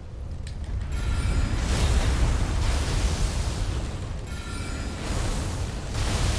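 A magic spell whooshes and crackles loudly.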